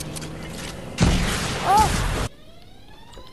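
A thruster roars in a burst.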